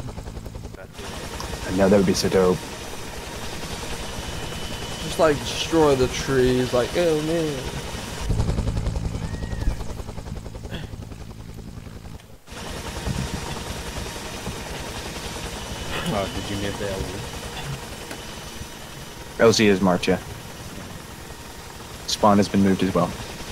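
A helicopter's rotor thuds steadily close by.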